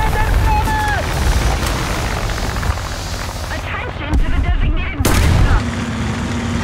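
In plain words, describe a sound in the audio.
A shell explodes loudly against a tank.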